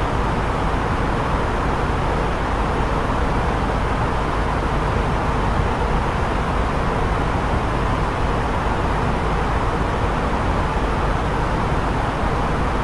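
A steady rushing drone of air and engines fills an aircraft cockpit.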